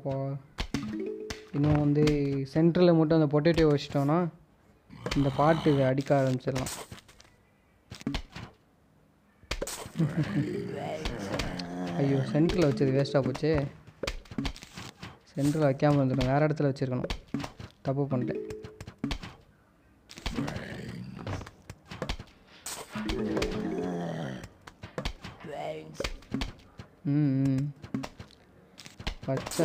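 Game plants fire peas with quick soft pops.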